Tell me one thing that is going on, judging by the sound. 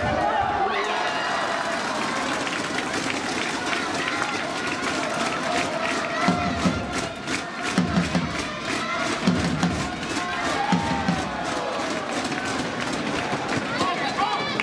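Spectators clap in a fast steady rhythm.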